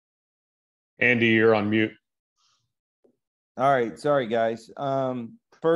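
A second man speaks over an online call.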